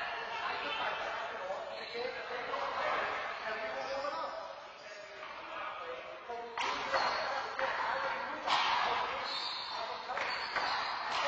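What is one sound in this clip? A man talks, his voice echoing in a large, hard-walled hall.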